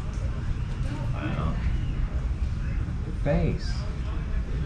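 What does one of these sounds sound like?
A young girl talks briefly nearby.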